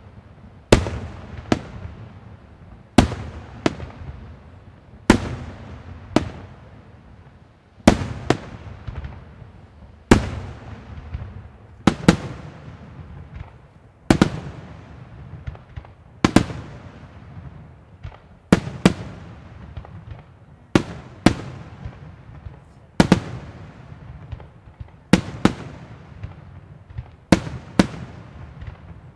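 Fireworks burst overhead with loud booming bangs in pairs, echoing away.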